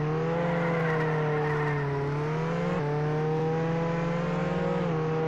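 A sports car engine roars steadily at high speed, shifting gears.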